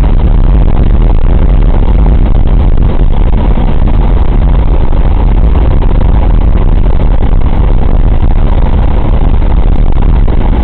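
Wind rushes past an open window of the aircraft.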